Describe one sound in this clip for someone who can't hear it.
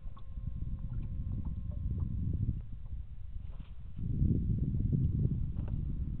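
Wind blusters across open water, rumbling low.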